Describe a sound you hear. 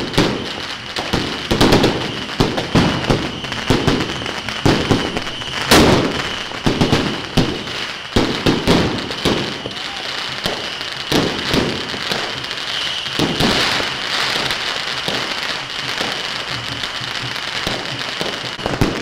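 Firecrackers pop and crackle nearby.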